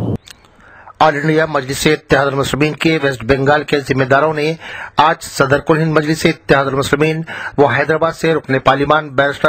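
A man speaks steadily and clearly, close to a microphone.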